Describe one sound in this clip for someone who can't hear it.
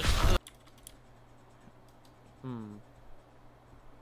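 A rifle scope zooms in with a short mechanical whir.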